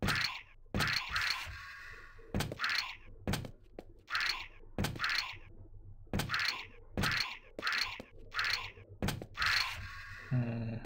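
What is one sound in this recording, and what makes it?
Quick jump-and-landing sounds from a video game character repeat in a steady rhythm.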